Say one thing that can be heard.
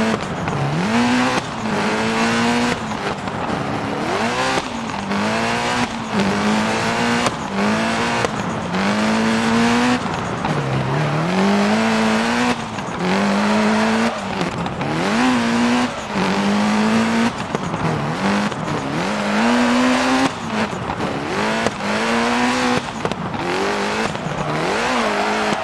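A racing car engine revs hard, rising through the gears and dropping sharply at each shift.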